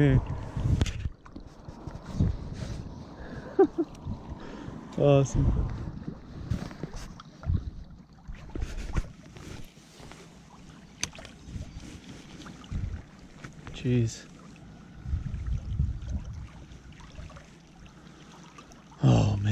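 Small waves lap gently against stones at the water's edge.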